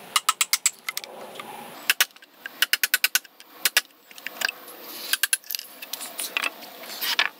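A mallet strikes a chisel, cutting into wood.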